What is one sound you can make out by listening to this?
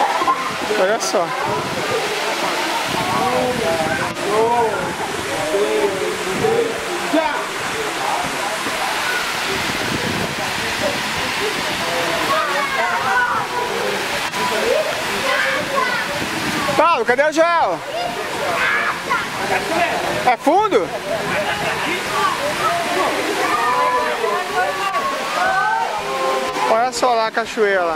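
Water trickles and rushes over rocks.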